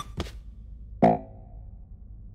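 A short game buzzer sounds once.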